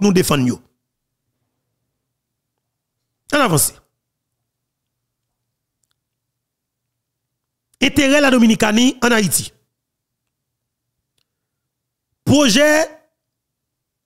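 A man speaks into a close microphone in short, emphatic bursts with long pauses.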